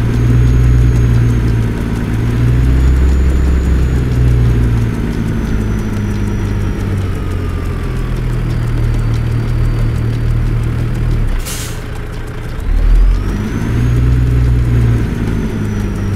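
A heavy truck engine rumbles and revs up and down.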